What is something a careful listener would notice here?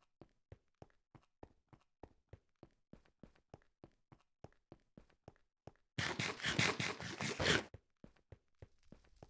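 Quick footsteps crunch steadily on stone.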